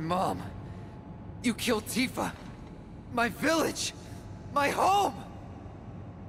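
A young man shouts angrily and with emotion.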